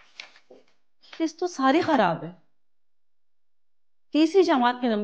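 A middle-aged woman speaks firmly, close by.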